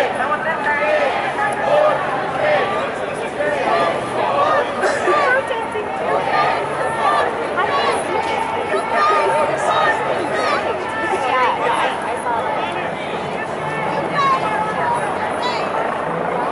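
A large crowd of men and women chatters and calls out all around, outdoors.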